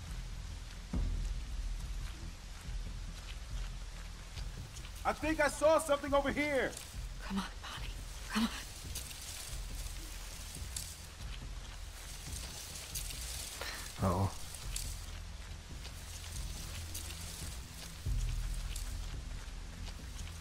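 Footsteps rustle through tall dry stalks.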